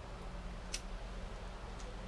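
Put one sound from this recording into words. A lighter clicks and flares.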